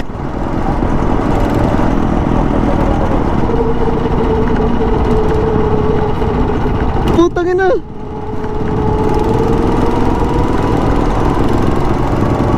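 A go-kart engine drones steadily close by.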